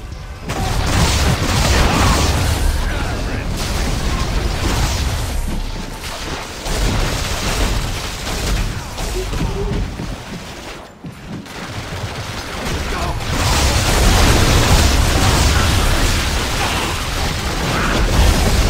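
Fiery explosions roar and crackle.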